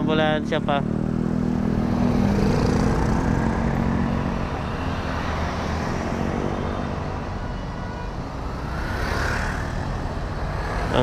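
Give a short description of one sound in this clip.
Traffic passes steadily on a busy road.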